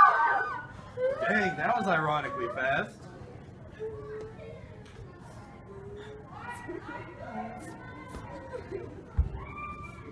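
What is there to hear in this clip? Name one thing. Teenage girls shout and cry out excitedly.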